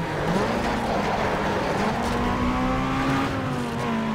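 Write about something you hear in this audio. Tyres screech as a car drifts around a bend.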